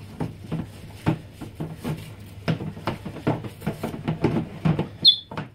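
An eclectus parrot makes rhythmic gulping clucks as it regurgitates, very close by.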